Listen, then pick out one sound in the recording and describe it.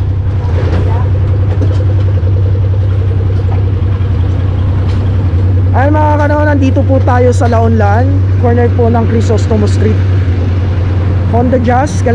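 A motorcycle engine idles with a steady low hum.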